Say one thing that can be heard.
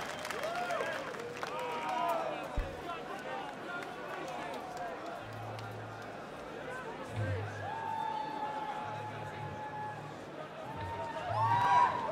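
A large outdoor crowd cheers and whistles.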